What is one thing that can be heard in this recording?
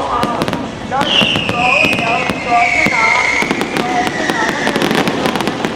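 A firework rocket whistles, its pitch slowly falling.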